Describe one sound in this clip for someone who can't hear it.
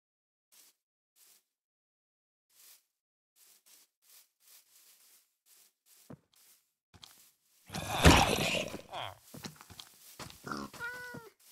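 Footsteps crunch softly over grass at a steady walking pace.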